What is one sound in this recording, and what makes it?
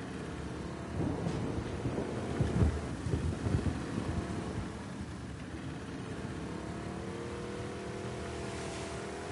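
Water splashes as a boat is pushed through it.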